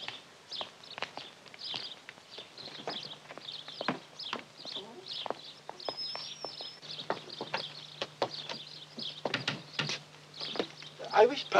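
Footsteps tap on a path.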